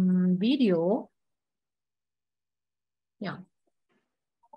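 A woman speaks calmly through an online call, in short bursts.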